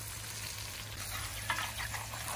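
A spoon scrapes against a pan.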